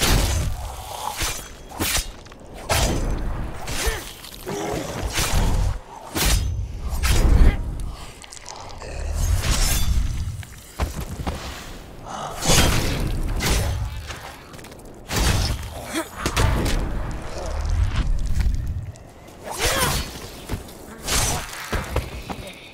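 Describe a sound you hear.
Blades slash and thud wetly into flesh again and again.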